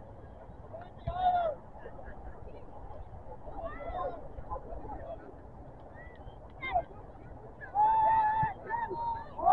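Adult spectators nearby shout and cheer outdoors.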